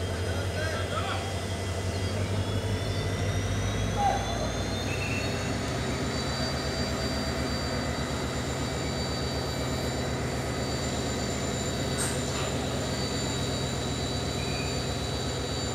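A train rumbles and clatters slowly past on the tracks.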